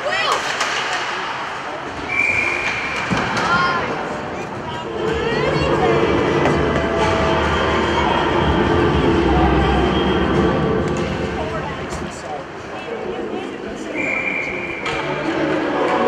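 Skates scrape and glide across ice in a large echoing rink.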